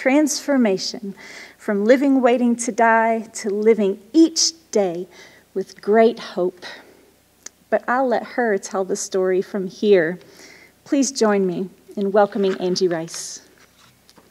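A middle-aged woman speaks warmly into a microphone in an echoing hall.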